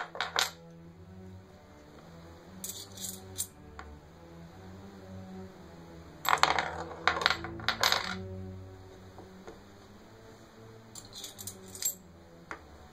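Small discs click down onto a wooden board.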